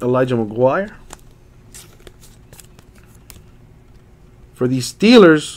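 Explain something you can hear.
Trading cards rustle and click as they are handled.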